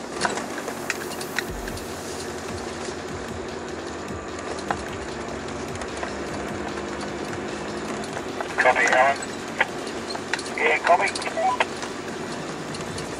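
A vehicle engine hums steadily from inside the car.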